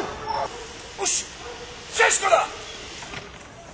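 A dog's claws scrape and thump on a wooden wall as it climbs over.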